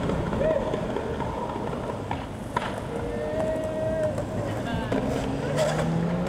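Skateboard wheels roll and rumble on a concrete path.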